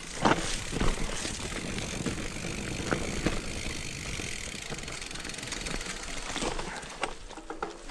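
Bicycle tyres roll and crunch over dry leaves and dirt on a trail.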